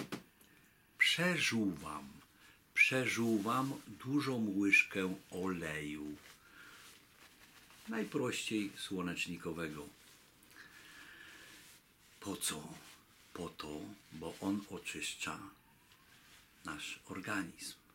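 A middle-aged man talks close up, with animation.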